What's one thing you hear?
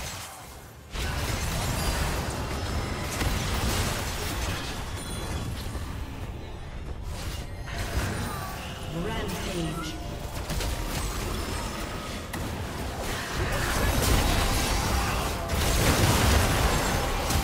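Spell blasts and hits from a video game battle crackle and boom.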